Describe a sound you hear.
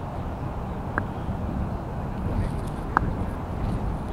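A cricket bat knocks a ball with a sharp crack.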